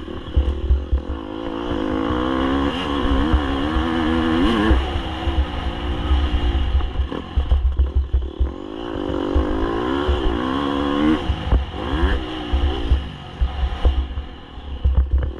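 A dirt bike engine revs up and down loudly.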